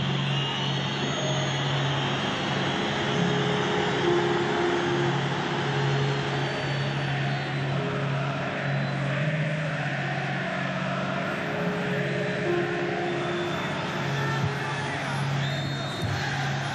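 A large stadium crowd chants loudly and steadily.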